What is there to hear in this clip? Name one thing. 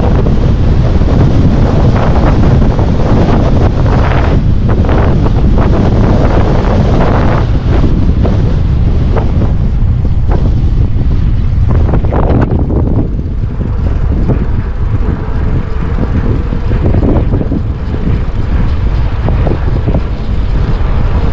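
Wind buffets a microphone loudly while riding outdoors.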